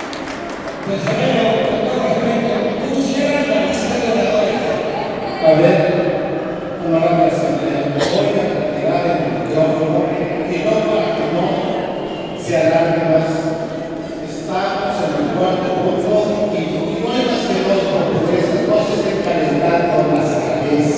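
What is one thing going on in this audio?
A man speaks to the crowd through a loudspeaker, echoing in a large hall.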